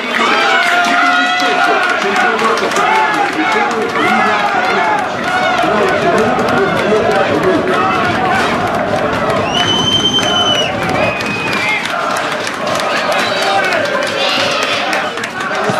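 A crowd of spectators shouts and chants outdoors.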